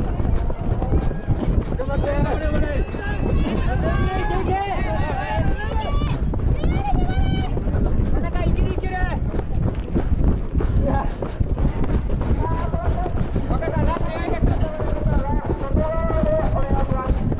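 Men call out loudly from the trackside.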